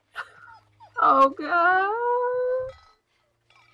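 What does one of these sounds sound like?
A young man cries out loudly and with a drawn-out wail into a close microphone.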